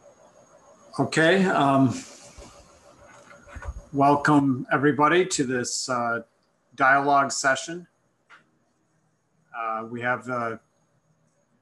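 A middle-aged man speaks calmly over an online call, pausing between phrases.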